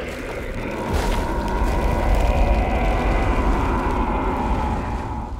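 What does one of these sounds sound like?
A large creature withers away with a deep, rumbling groan that swells and then slowly fades.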